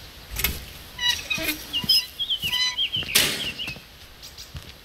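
A metal door creaks and scrapes open.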